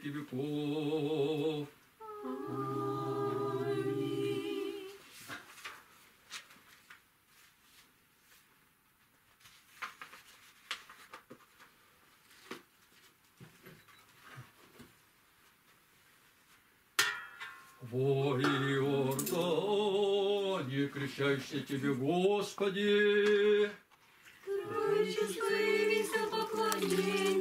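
A woman sings a slow chant.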